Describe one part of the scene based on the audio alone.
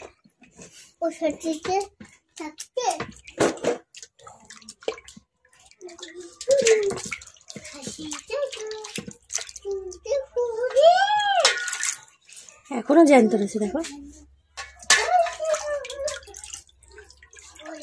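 Water sloshes and splashes in a metal bowl.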